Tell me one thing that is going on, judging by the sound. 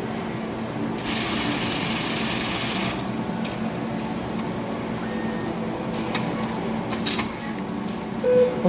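A cash machine whirs as it dispenses notes.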